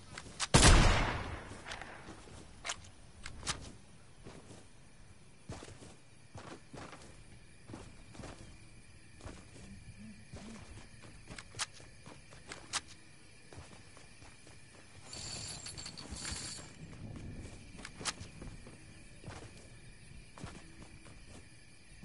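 Footsteps of a game character run on the ground.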